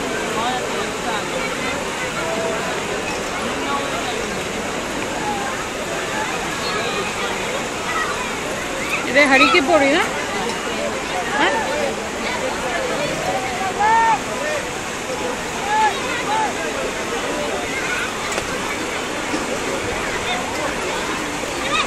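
A fast river rushes and churns over a weir.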